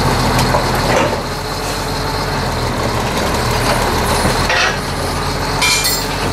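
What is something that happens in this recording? Metal creaks and clanks as a loader's forks push against a car.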